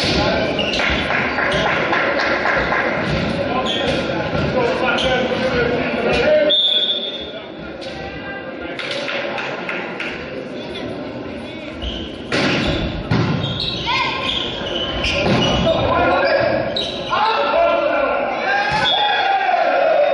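Players call out and shout to each other in a large echoing hall.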